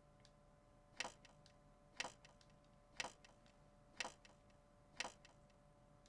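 A clock ticks loudly once a second.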